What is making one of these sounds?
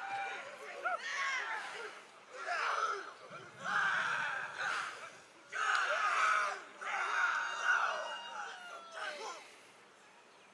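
A group of men chant and shout in unison.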